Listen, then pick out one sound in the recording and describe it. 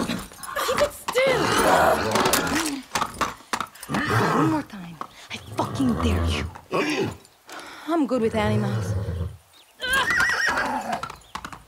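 A young woman talks defiantly up close.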